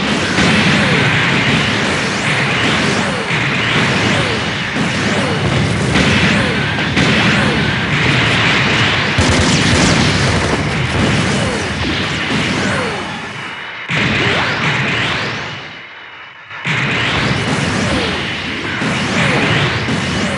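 A mech's jet thrusters roar steadily.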